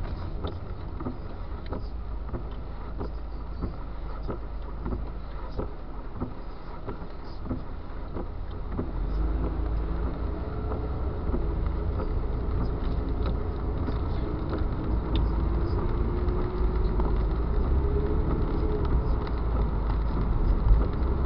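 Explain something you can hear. A car engine hums low inside the car and rises in pitch as it speeds up.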